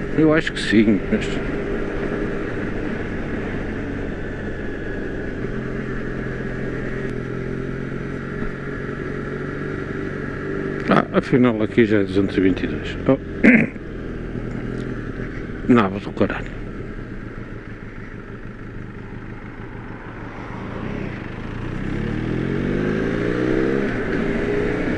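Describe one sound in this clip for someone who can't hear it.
Wind rushes past a motorcycle rider.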